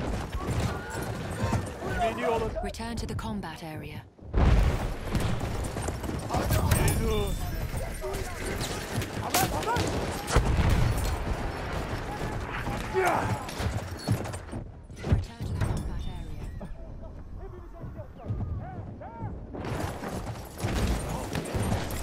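A horse gallops with rapid, thudding hoofbeats.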